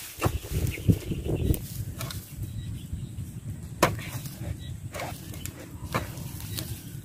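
A spade chops into soil.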